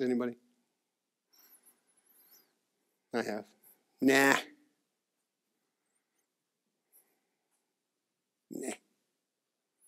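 A middle-aged man speaks in short bursts with long pauses, heard through a microphone.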